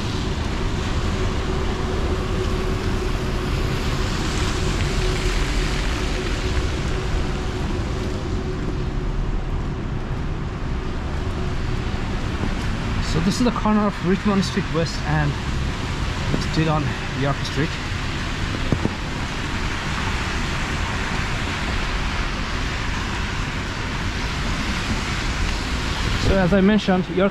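Traffic rumbles and tyres hiss steadily on a wet, slushy street.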